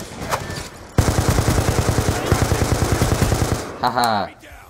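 A rifle fires rapid automatic bursts up close.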